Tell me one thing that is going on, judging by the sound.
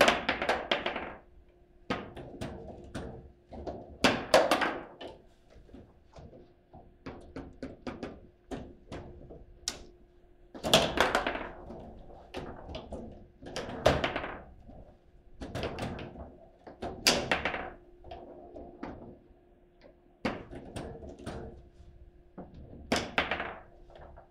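A foosball ball clacks sharply against the rods and table walls.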